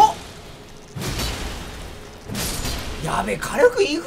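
A blade slashes and strikes with heavy thuds.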